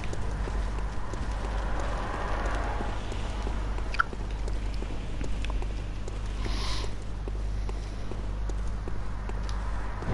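Footsteps tap on stone stairs.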